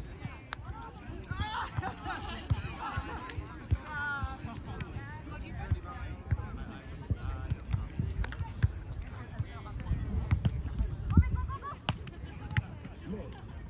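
A volleyball is hit with dull thumps in the distance.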